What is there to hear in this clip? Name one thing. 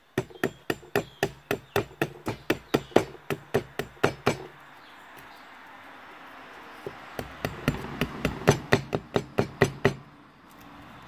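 A blade taps and chops rapidly against wood.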